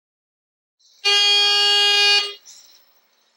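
An intercom buzzes with a loud, steady tone.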